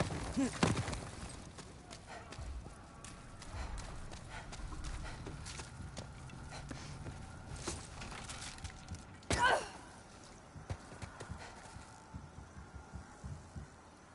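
Footsteps walk on stone.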